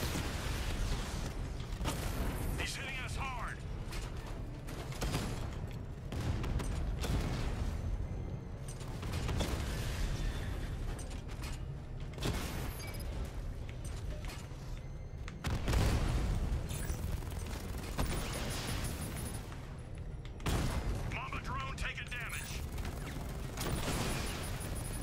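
Gunfire and explosions boom from a video game.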